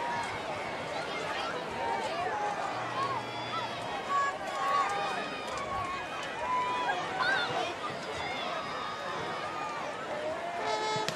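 A large crowd murmurs and chatters outdoors throughout.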